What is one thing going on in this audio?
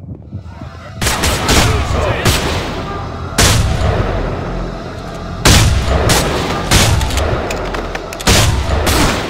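A shotgun fires loud blasts outdoors.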